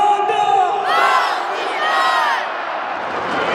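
A crowd of young fans shouts and cheers loudly.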